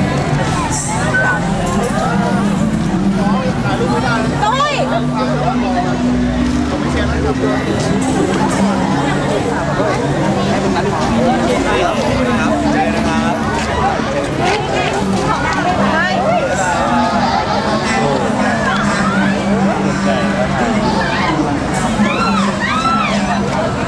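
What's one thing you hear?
A crowd of young people chatters and calls out excitedly nearby.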